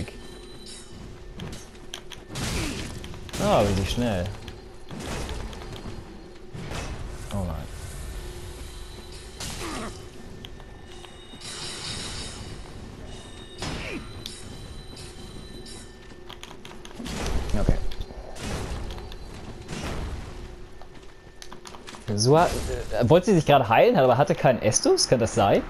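Metal weapons clang and strike in a fight.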